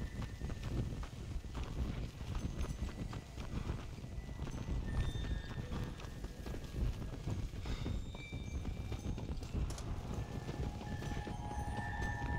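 Footsteps run over dirt and grass.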